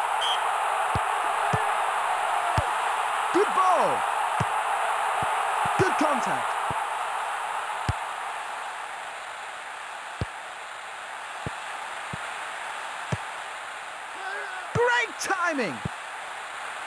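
A football is kicked with short dull thuds, again and again.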